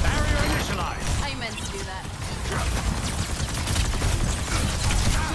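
Rapid energy weapon shots fire in bursts.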